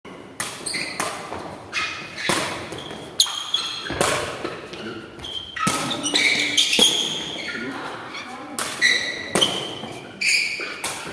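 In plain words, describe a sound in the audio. A ball thuds off feet and echoes in a large hall.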